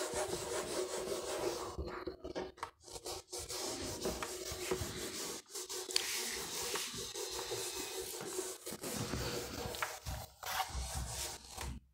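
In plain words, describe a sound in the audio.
A felt duster rubs and squeaks across a whiteboard.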